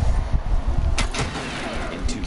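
A heavy energy weapon blasts with a loud crackling burst.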